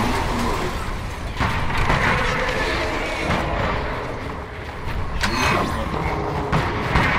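Energy weapons crackle and zap in a steady battle.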